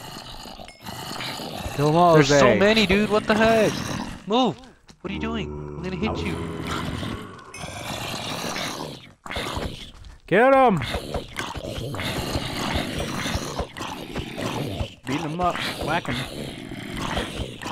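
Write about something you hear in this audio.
Zombies groan and moan close by.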